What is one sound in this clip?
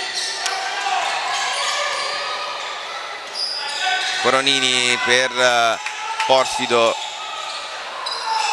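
A crowd murmurs in an echoing indoor hall.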